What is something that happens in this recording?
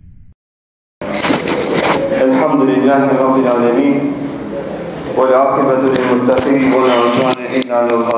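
A man recites in a melodic, chanting voice into a microphone, close by.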